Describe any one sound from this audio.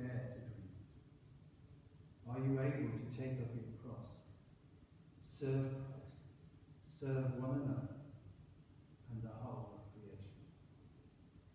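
An elderly man reads out calmly into a microphone in a large echoing hall.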